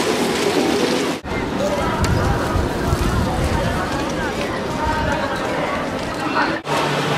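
A busy street crowd murmurs and chatters outdoors.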